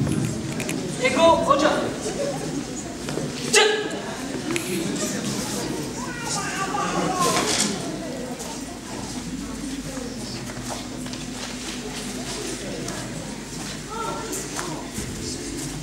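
Young women shout sharply in a large echoing hall.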